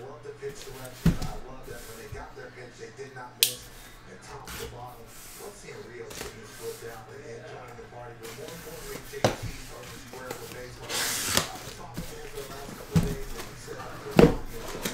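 A cardboard box thumps and scrapes as it is turned over.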